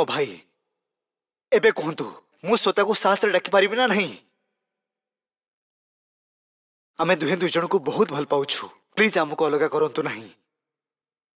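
A man speaks calmly and firmly nearby.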